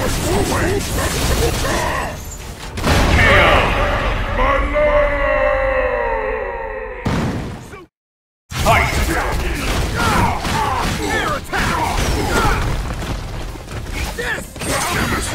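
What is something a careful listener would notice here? Punches and blasts land with sharp electronic impacts.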